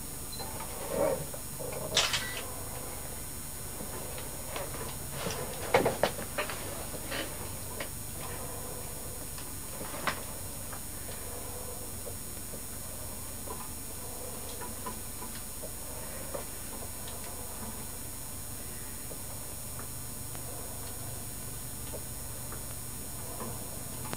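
A man breathes noisily through a diving mouthpiece.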